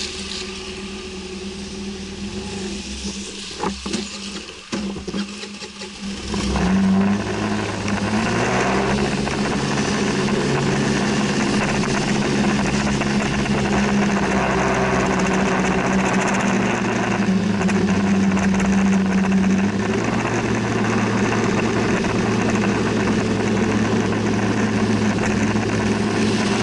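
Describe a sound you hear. A car engine hums low and rises as the car pulls away.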